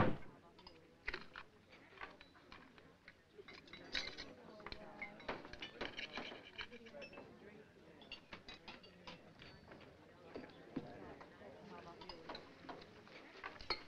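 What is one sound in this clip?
Knife and fork click and scrape on a plate.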